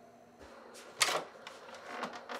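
A microwave door clicks open.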